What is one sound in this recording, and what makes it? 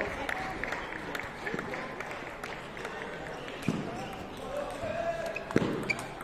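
A table tennis ball clicks sharply against paddles and a table in a large echoing hall.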